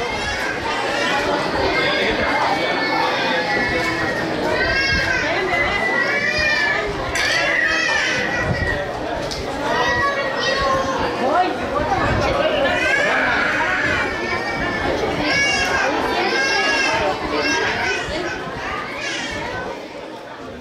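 Children shout and call out with high voices.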